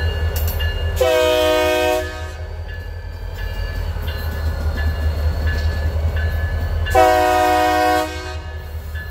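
A train horn blasts twice loudly.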